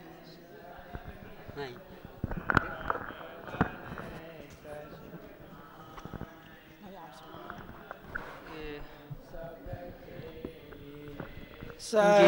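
Several men and women talk at the same time nearby, in an echoing hall.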